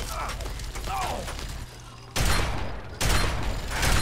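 Gunshots fire rapidly, loud and close.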